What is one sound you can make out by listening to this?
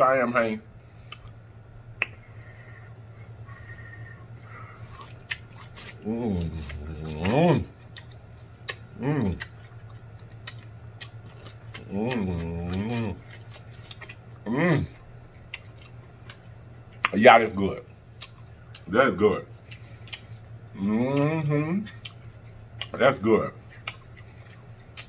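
Food squelches and crunches as a man chews close to a microphone.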